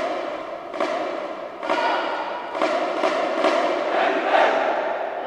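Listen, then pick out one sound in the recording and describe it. Drums beat in strong accents.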